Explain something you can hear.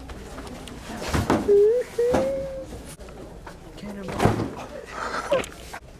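A playpen's frame rattles and creaks as someone climbs in.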